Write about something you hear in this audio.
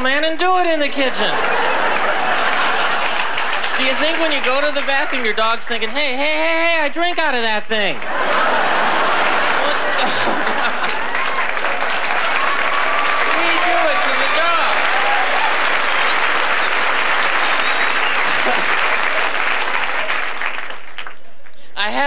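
An audience laughs and applauds loudly in a large room.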